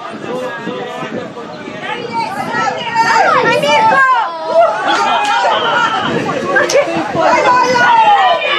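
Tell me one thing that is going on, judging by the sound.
Young boys shout and call out to each other across an open field.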